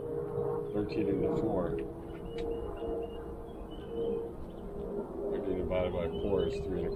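A man talks casually nearby outdoors.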